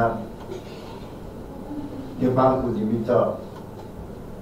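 A middle-aged man speaks calmly into a microphone in short phrases.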